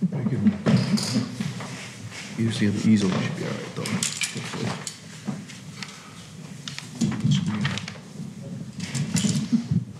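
Large paper sheets rustle and crackle as they are turned.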